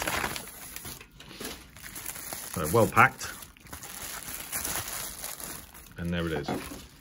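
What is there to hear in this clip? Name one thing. Bubble wrap crinkles.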